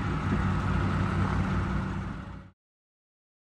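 A diesel hydraulic excavator engine rumbles.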